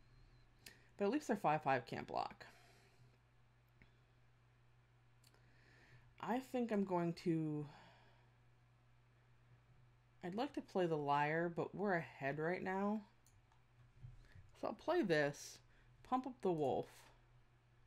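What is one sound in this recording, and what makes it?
A woman talks with animation through a microphone, in bursts with pauses.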